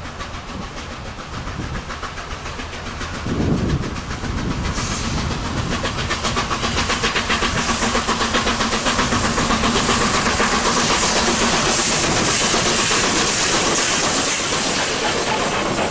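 A steam locomotive approaches, chuffing rhythmically and growing louder.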